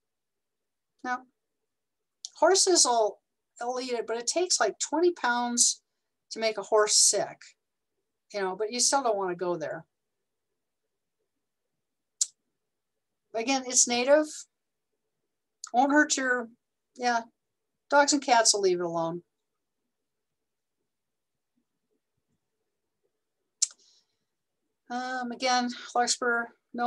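A woman speaks calmly through an online call, pausing between phrases.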